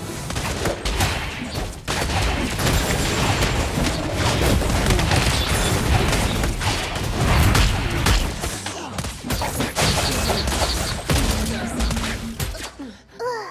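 Game battle effects clash and burst with rapid hits and blasts.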